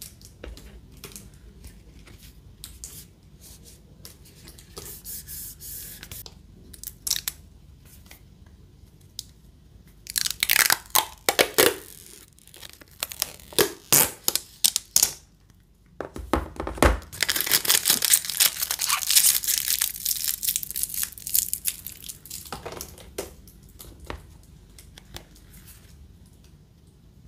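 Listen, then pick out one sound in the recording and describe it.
Fingers rub and tap against a plastic phone case.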